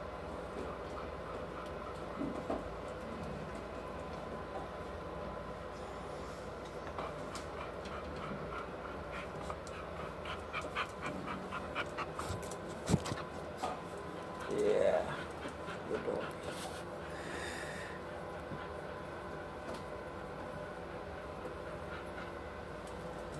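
A hand pats and rubs a dog's short fur.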